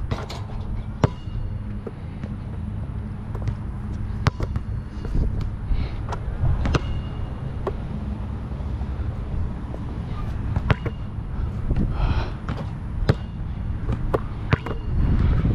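A basketball bounces sharply on a hard outdoor court.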